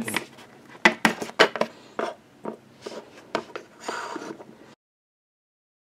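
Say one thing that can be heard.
Small plastic toys tap and click on a hard surface.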